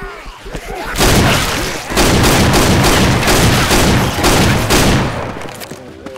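A shotgun fires several loud, rapid blasts that echo in a stone passage.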